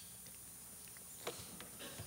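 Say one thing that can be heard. Footsteps cross a hard floor.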